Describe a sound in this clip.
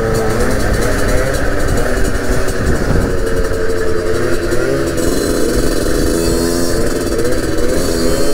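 A motorcycle engine revs and drones up close.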